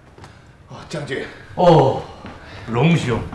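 An older man calls out loudly indoors.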